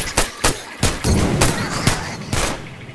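A fire bursts into flames with a loud whoosh.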